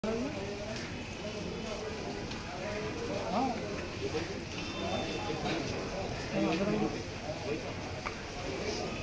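A crowd of men and women murmur and talk quietly nearby.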